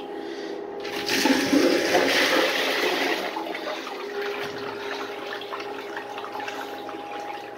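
Water rushes and swirls down a small toilet bowl drain.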